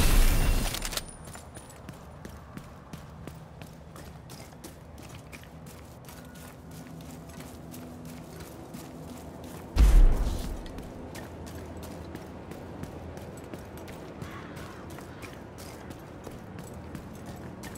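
Footsteps crunch steadily over debris-strewn pavement.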